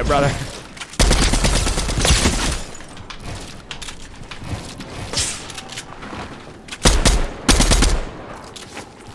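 Loud gunshots ring out in short bursts.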